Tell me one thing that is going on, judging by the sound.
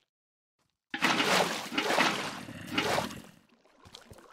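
Water splashes as a bucket is poured out.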